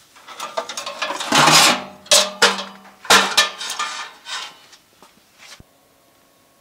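Metal equipment knocks and rattles as it is handled close by.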